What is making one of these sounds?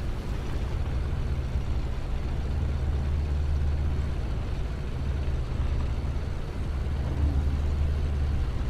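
Tank tracks clatter and rattle over a dirt road.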